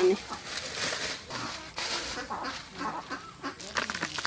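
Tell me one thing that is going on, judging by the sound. Leaves rustle and crinkle as hands sort them.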